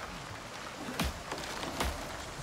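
A hammer knocks against wood.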